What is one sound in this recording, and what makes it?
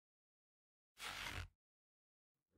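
A bow's string is drawn back.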